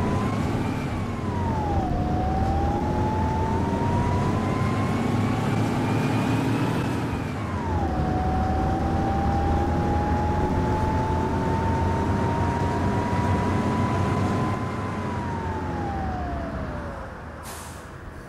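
A bus engine whines and hums, rising and falling in pitch as the bus shifts gears.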